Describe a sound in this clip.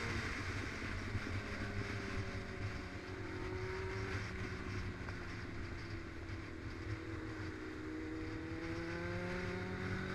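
A motorcycle engine drones steadily up close, its pitch slowly rising and falling.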